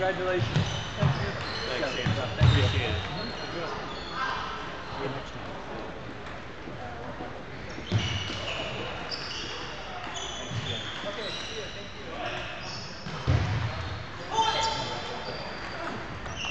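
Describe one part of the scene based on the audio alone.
A ping pong ball clicks back and forth between paddles and the table.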